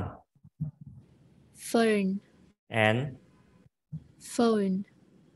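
A young man slowly pronounces single words into a close microphone.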